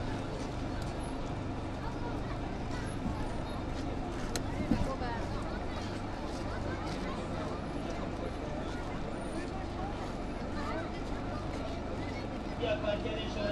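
A vehicle engine idles and rumbles slowly.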